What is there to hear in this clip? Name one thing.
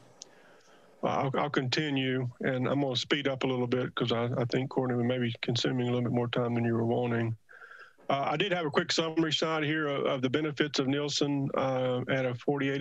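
A middle-aged man speaks steadily over an online call.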